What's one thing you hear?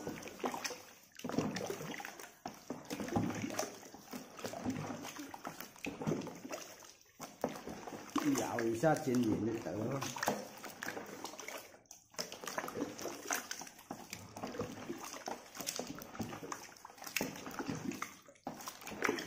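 A wooden paddle stirs and sloshes thick liquid in a metal pot.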